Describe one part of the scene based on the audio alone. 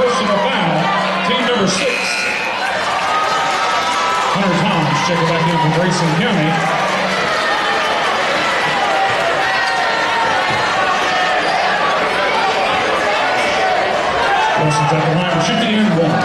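A crowd chatters and murmurs in a large echoing gym.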